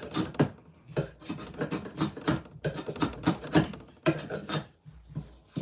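A blade scrapes along a piece of wood in short strokes.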